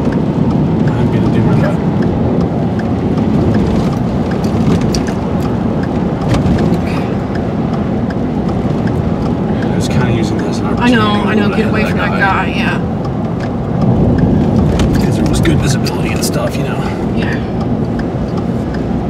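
A car engine and tyres rumble steadily while driving.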